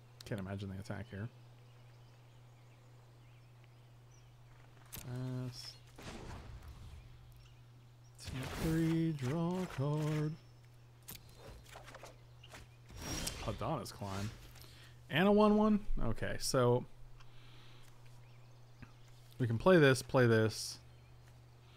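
A middle-aged man talks casually into a close microphone, in short bursts with pauses.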